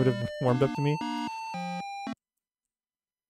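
An old computer game plays a short beeping tune.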